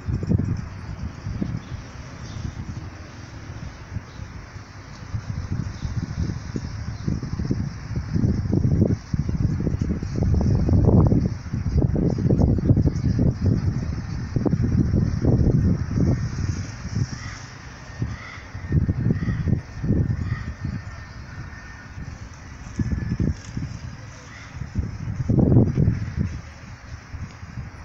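Wind rumbles and buffets outdoors in gusts.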